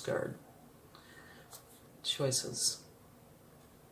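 A playing card slides softly onto a wooden table.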